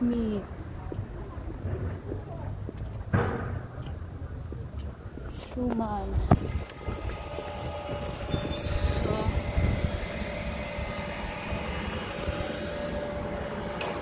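Traffic hums along a city street.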